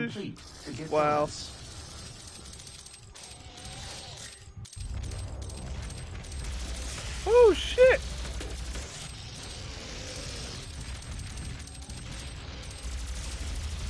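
An energy gun fires in rapid bursts.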